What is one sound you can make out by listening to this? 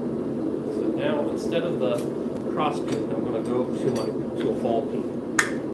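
A hammer rings as it strikes hot metal on a steel block, again and again.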